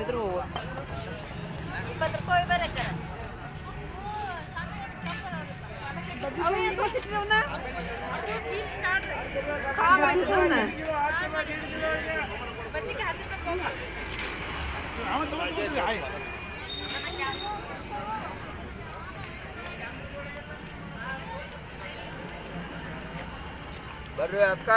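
Women talk and bargain nearby.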